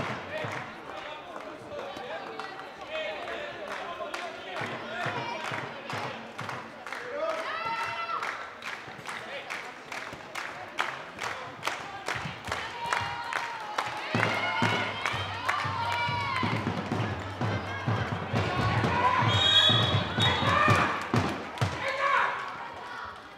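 A handball bounces repeatedly on a hard floor in a large echoing hall.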